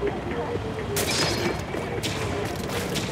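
Wet paint splatters with squelching splashes.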